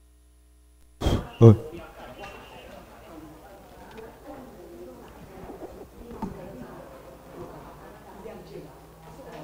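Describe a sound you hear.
A man speaks calmly through a microphone and loudspeakers in a hall with some echo.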